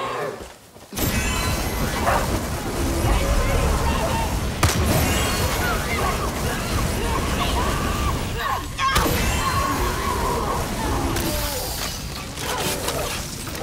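A flamethrower roars in loud, rushing bursts.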